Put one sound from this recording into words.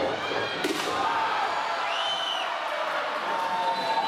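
A wrestler slams onto the ring mat with a heavy thud.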